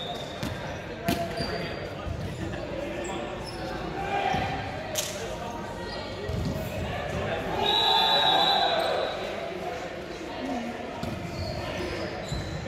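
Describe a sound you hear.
Players' voices call out in a large echoing gym.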